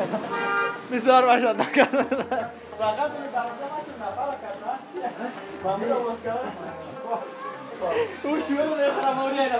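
A young man speaks cheerfully nearby.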